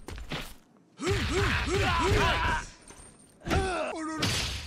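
A man grunts and shouts with effort.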